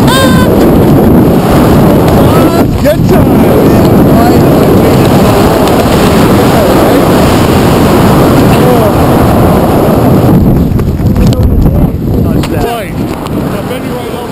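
Wind roars loudly and steadily against a microphone.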